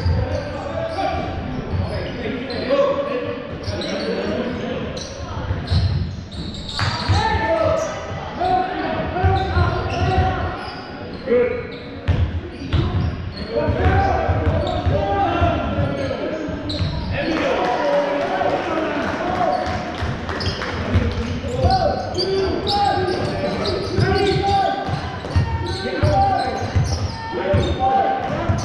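Players call out loudly to each other.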